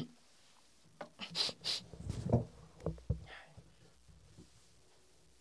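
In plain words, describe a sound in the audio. Clothes rustle as a man stands up.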